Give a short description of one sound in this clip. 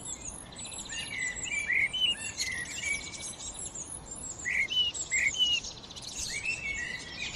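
A blackbird sings nearby with varied, fluting phrases.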